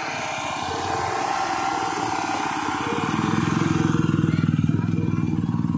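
A small truck's engine runs as it drives slowly past.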